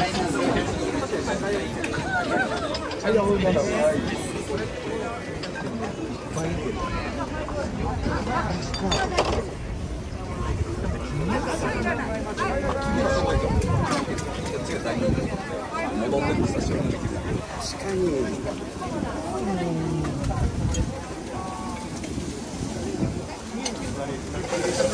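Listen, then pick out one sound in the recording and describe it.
A crowd of men and women chat and laugh nearby outdoors.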